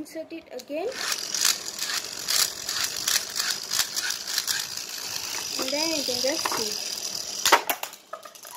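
A spinning top whirs and rattles on a hard surface.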